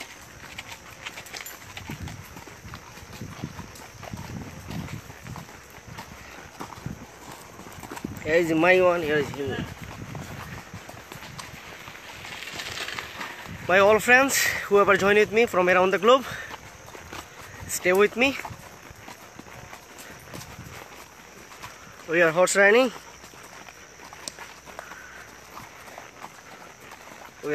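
Horse hooves clop steadily on a gravel path.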